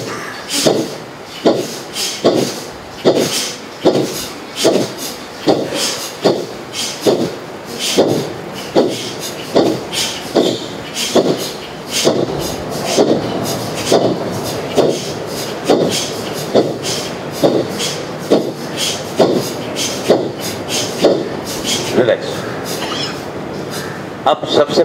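A man breathes out sharply through his nose in a steady, even rhythm.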